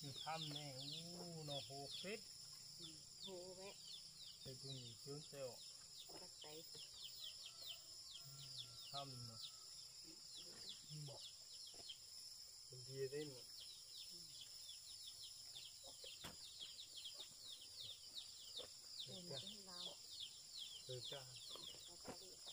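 A woman talks calmly nearby.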